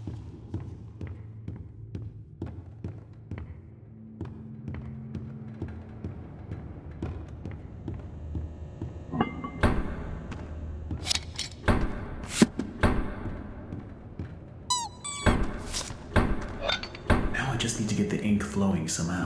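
Footsteps knock steadily on wooden floorboards.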